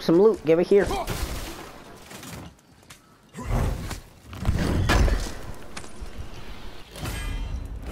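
A heavy wooden chest lid is pried open and thuds.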